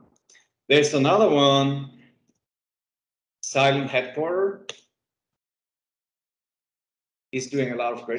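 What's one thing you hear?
A man speaks calmly through a headset microphone over an online call.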